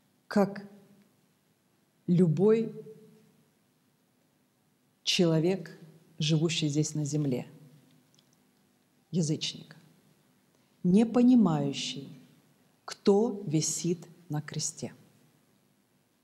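A middle-aged woman speaks calmly into a microphone, in short phrases with pauses.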